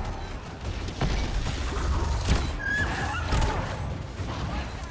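Weapons strike with sharp impacts.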